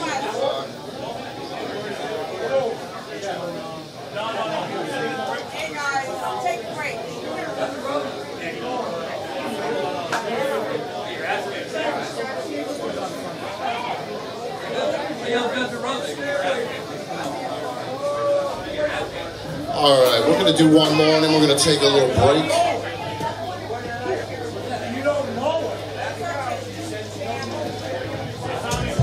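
Electric guitars play a loud rock tune.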